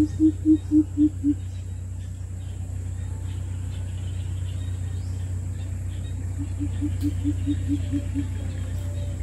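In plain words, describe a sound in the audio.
A greater coucal calls a deep hooting series.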